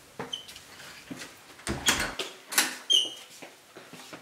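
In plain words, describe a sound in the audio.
A door opens and shuts with clicks and thuds.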